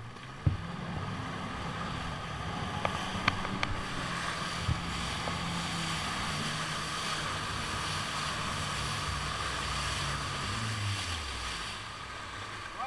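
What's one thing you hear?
Water sprays and splashes behind a jet ski.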